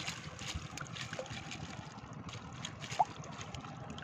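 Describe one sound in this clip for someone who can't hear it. Water drips and splashes from a lifted fish trap.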